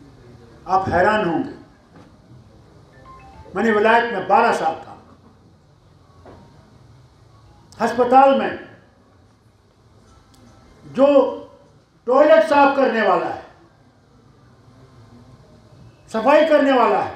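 An elderly man speaks forcefully into a microphone in short bursts with pauses.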